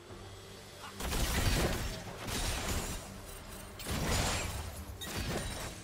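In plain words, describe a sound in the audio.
Game combat sound effects clash and crackle in bursts.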